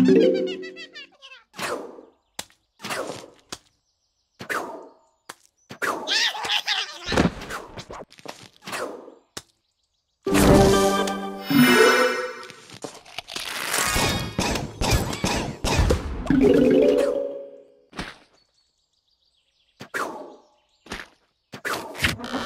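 Game plants pop as they shoot peas.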